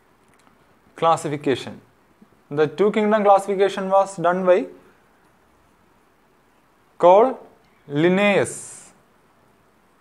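A young man speaks calmly and clearly, as if explaining a lesson.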